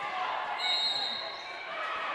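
Sneakers squeak on a hard floor in an echoing gym.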